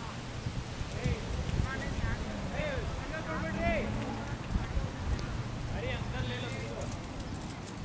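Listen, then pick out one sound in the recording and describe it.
Men call out to each other in the distance.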